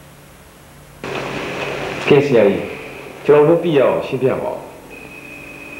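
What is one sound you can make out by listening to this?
A man speaks calmly nearby.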